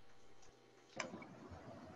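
A woman strums an acoustic guitar.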